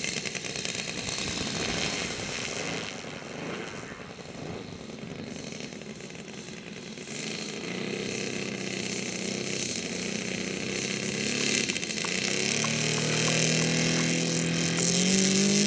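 A model plane's engine buzzes and drones, its pitch rising toward the end.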